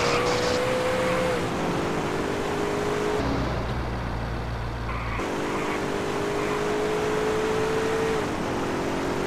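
A car engine drones steadily and shifts in pitch as the car drives.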